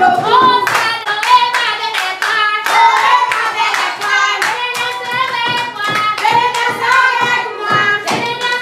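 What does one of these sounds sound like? Young children sing together loudly.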